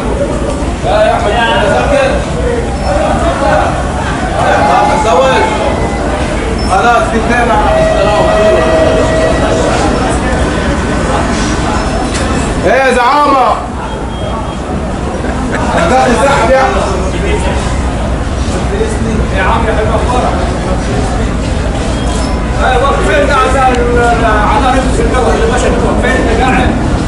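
A crowd of men and women chatter nearby in an echoing space.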